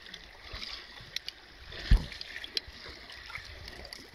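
A hand splashes in the water.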